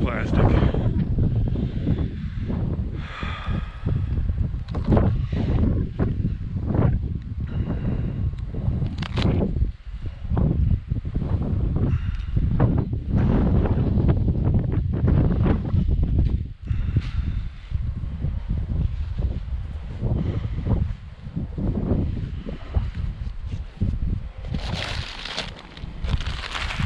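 Wind rumbles and buffets against the microphone outdoors.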